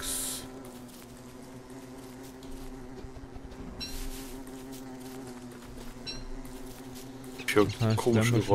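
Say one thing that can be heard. Footsteps patter softly on grass.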